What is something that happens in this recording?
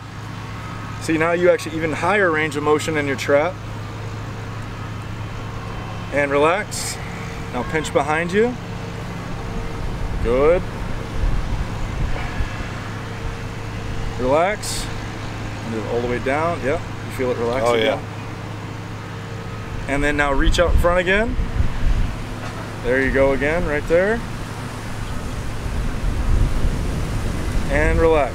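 A man speaks calmly and clearly up close.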